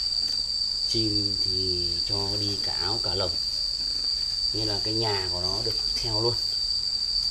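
Doves coo in low, rolling calls nearby.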